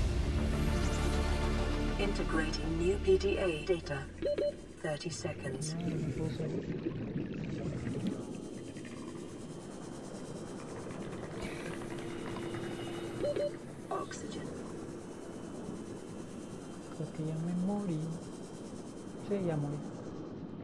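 Water rushes and gurgles in a deep underwater ambience.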